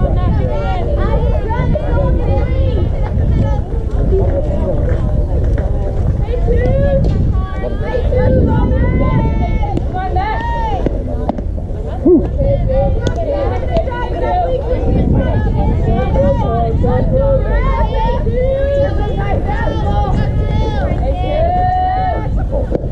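Young girls shout and cheer nearby outdoors.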